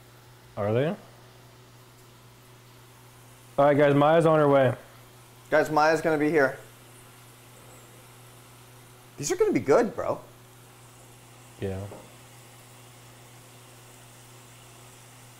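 Hot oil sizzles steadily in a deep fryer.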